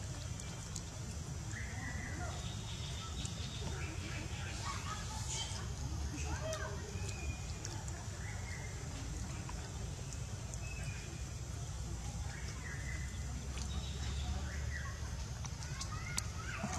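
A monkey chews and nibbles food up close.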